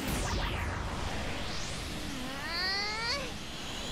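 A magical chime swooshes and shimmers.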